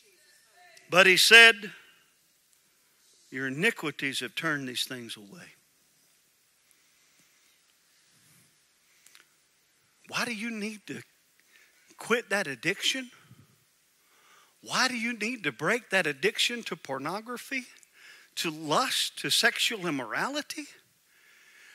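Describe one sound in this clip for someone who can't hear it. A middle-aged man speaks through a microphone to a hall, slowly and with pauses.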